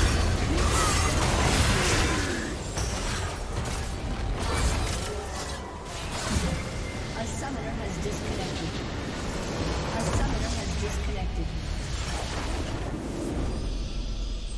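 Game spell effects and combat sounds clash rapidly.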